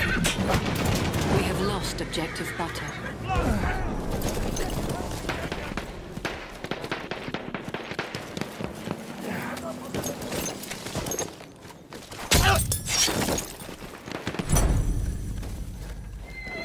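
Gunshots crack loudly, several in a row.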